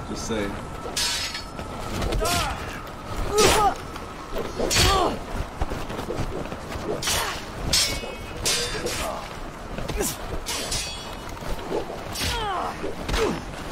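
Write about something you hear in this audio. Swords clash and clang sharply, again and again.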